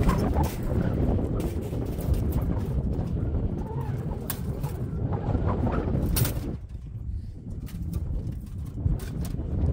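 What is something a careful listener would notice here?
A folding metal cot frame clanks as it is folded.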